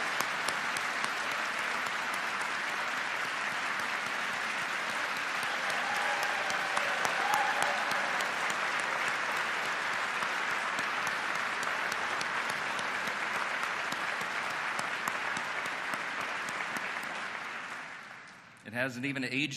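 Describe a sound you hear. A crowd applauds steadily in a large hall.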